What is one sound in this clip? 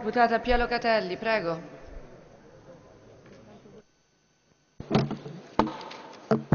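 A woman speaks firmly into a microphone in a large echoing hall.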